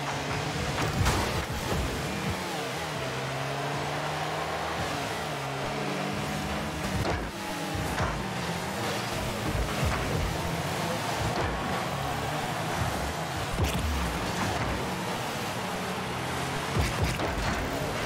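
A ball thuds as a car hits it.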